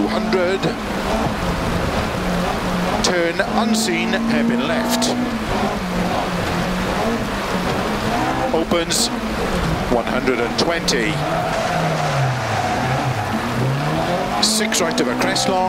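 A rally car engine revs hard, rising and falling as gears change.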